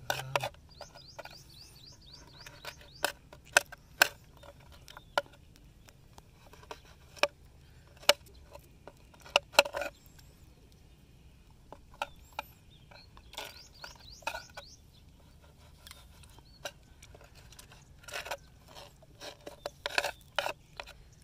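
A knife scrapes and taps on a board.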